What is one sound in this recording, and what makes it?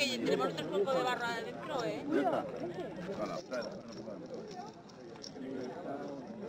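A metal chain rattles and clinks.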